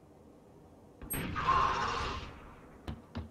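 A rifle scope zooms in with a short whir.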